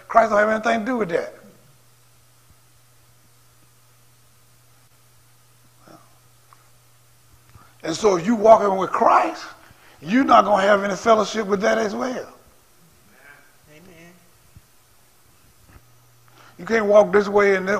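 A man preaches through a microphone, in bursts with long pauses.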